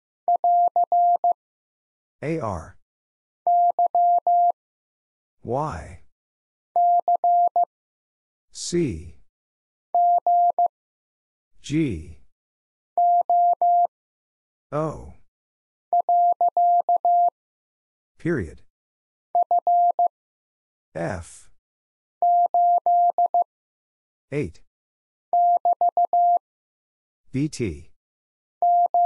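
Morse code beeps in short, quick bursts of a steady tone.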